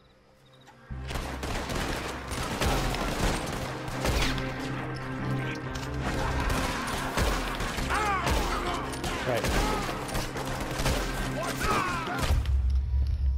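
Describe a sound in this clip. Gunshots crack rapidly, one after another.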